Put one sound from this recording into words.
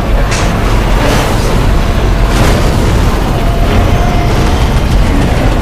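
A tank engine rumbles loudly as the tank rolls along.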